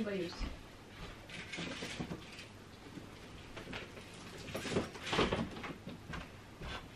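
A man rustles through a pile of clothes.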